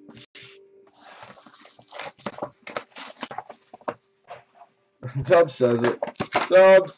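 Plastic packaging crinkles and tears as hands open it.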